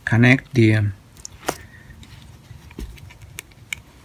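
A cable plug clicks into a socket.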